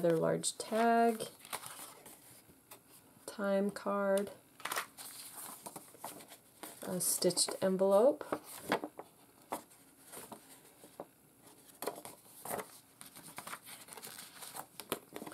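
Paper rustles and crinkles as it is handled up close.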